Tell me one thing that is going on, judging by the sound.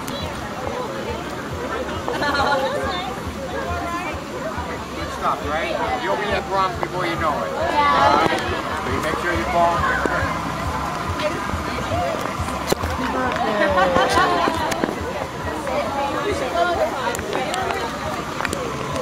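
People talk nearby outdoors.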